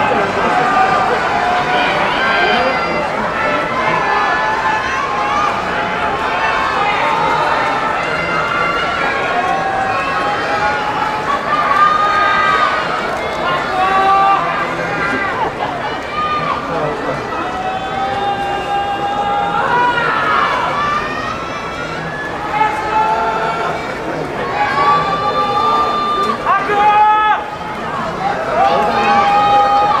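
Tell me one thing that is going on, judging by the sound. A large crowd murmurs and calls out in a big echoing hall.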